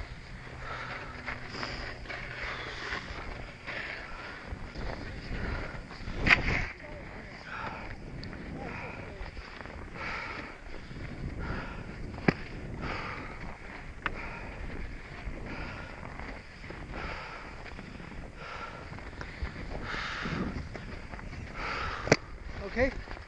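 Snow crunches and scrapes underfoot.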